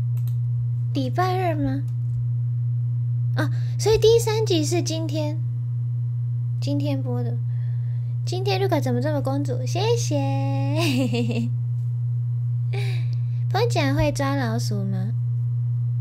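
A young woman speaks close into a microphone, calmly and with animation.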